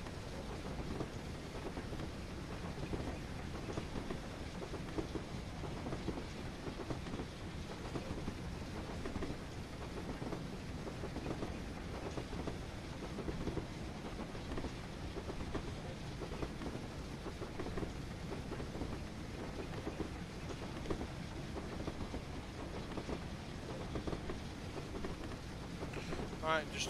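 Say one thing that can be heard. A steam locomotive chuffs steadily as it runs along the track.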